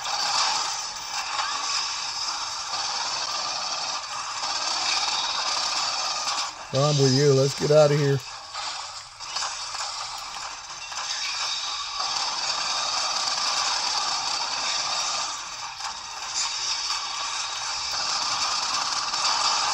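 Rapid gunfire crackles from a small game console speaker.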